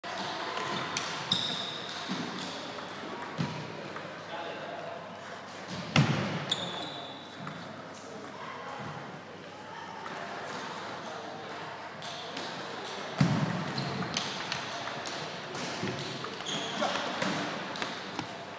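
A ping pong ball clicks back and forth on paddles and a table.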